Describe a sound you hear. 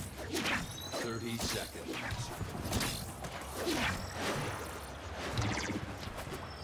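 Sword swings whoosh and clash in quick bursts.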